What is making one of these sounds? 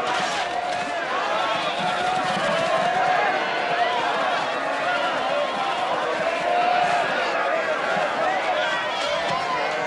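Sheep bleat loudly.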